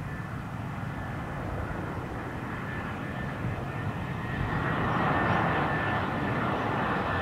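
A jet airliner's engines roar steadily overhead and grow louder as it approaches.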